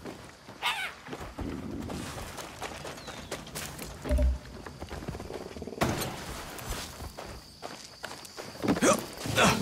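Footsteps crunch on dry dirt and sand.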